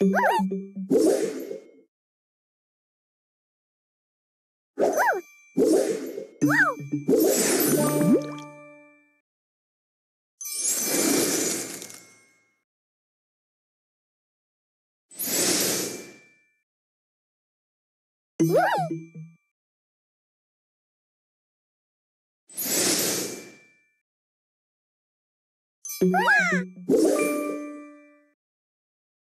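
Cheerful game chimes and pops ring out in short bursts as pieces match.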